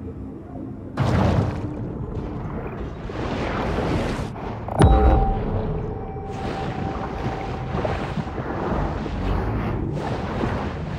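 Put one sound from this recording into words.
Water rushes and swooshes around a swimming shark.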